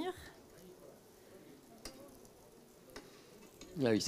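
A fork taps and scrapes against a frying pan.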